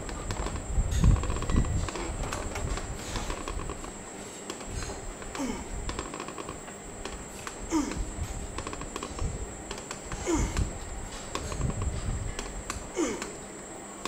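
A gym machine's weight stack thuds and clanks as it rises and falls.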